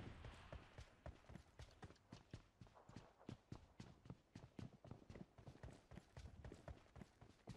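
Footsteps thud quickly and steadily on hard ground.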